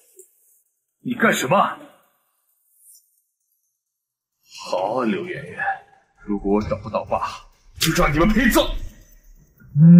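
A man speaks angrily and threateningly.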